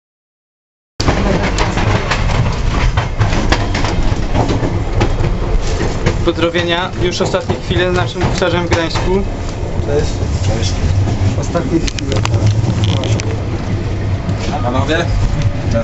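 A train rumbles and rattles along the tracks.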